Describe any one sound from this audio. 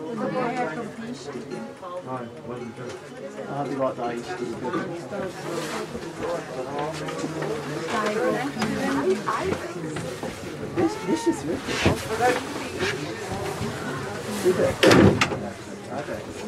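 A rack railway car rumbles and clatters slowly along the track toward the listener.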